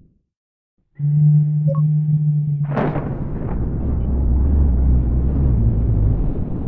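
A loud blast bursts and rumbles on.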